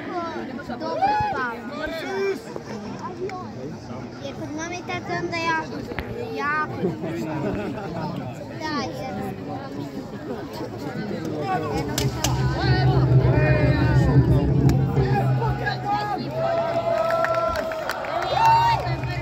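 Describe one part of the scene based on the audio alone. A crowd of spectators chatters in an open-air arena.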